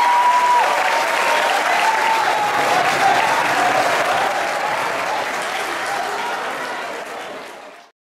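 A crowd cheers and applauds loudly, then fades away.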